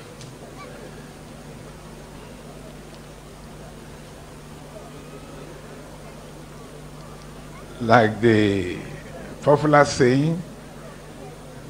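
A large crowd murmurs softly in the distance outdoors.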